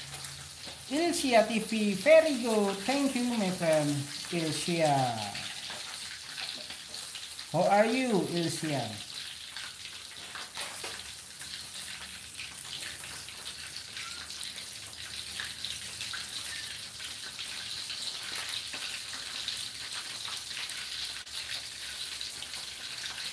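A metal spatula scrapes and taps against a metal pan.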